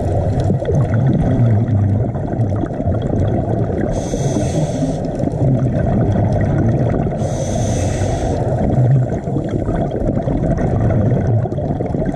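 Bubbles from scuba regulators gurgle and rumble steadily underwater.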